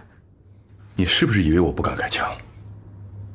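A man speaks threateningly.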